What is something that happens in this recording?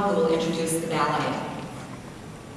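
A woman speaks warmly into a microphone over a loudspeaker in a large hall.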